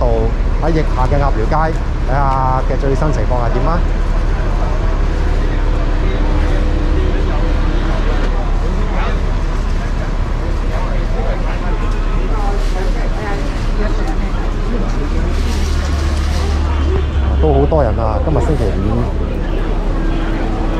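Voices of men and women chatter all around outdoors in a busy street.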